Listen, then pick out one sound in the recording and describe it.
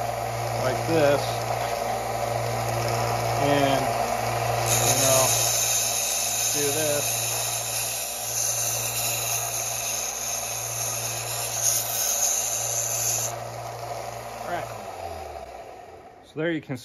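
An electric belt sander motor hums steadily, then winds down.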